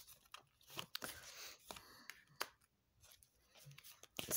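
Playing cards slide and tap onto a soft cloth.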